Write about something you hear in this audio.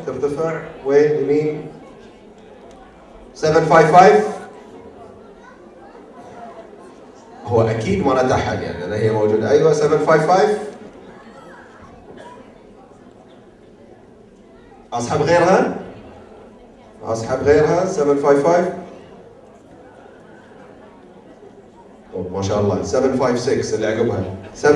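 A man speaks with animation into a microphone, heard through loudspeakers in a large hall, in bursts with pauses.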